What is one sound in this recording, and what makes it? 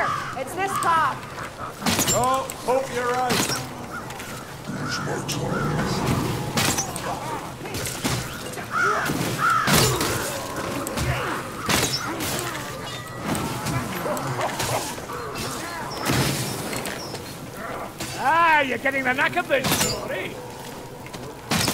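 A bowstring snaps as arrows fly.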